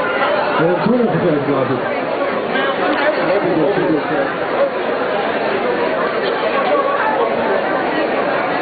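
A live band plays rock music loudly through amplifiers.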